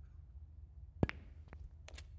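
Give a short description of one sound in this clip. A cue strikes a snooker ball with a sharp tap.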